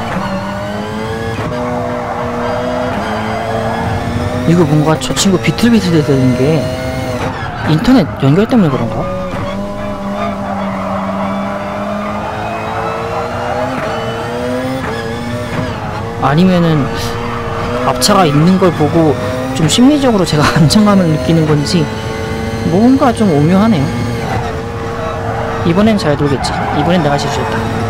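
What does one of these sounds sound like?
A racing car engine roars steadily, its pitch climbing and dropping with gear changes.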